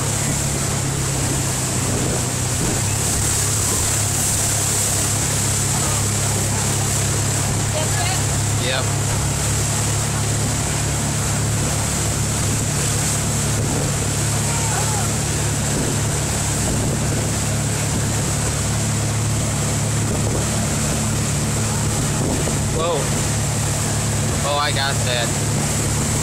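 Churning water splashes and hisses in a boat's wake.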